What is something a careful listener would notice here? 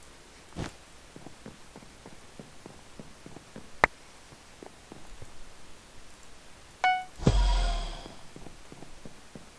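Footsteps patter lightly on wooden planks.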